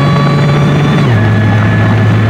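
A supercharged V6 car engine drops in pitch as the car shifts up a gear.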